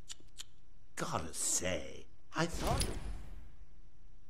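A man speaks in a mocking, theatrical voice.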